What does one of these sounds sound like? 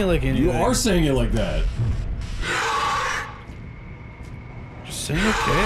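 A monster shrieks and growls up close.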